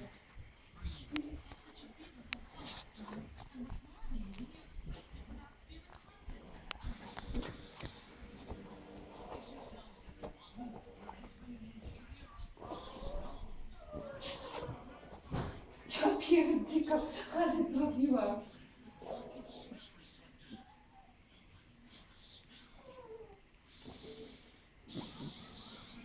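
A puppy whimpers and whines up close.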